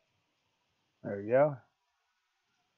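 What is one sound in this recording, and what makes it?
A man speaks briefly into a microphone.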